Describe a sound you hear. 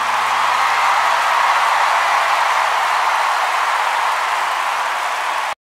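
A huge stadium crowd cheers and roars loudly, echoing through the open arena.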